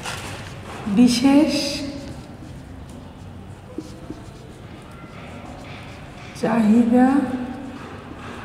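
A woman speaks briefly and calmly nearby.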